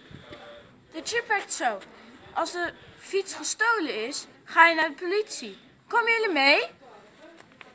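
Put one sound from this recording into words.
A young girl talks with animation close to the microphone.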